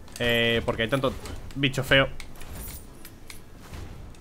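Coins jingle as they are picked up.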